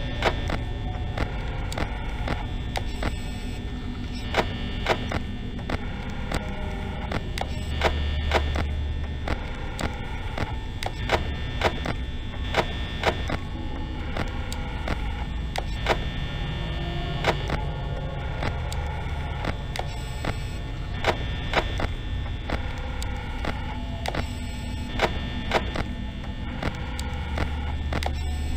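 Electronic static hisses and crackles steadily.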